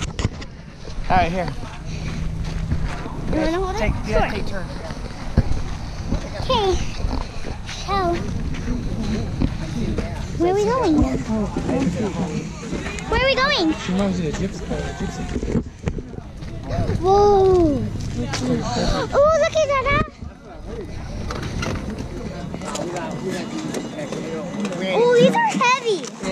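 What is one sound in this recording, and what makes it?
Two young girls talk and exclaim close by, with animation.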